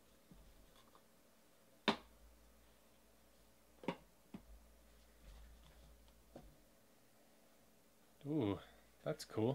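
Trading cards click and shuffle in a hand.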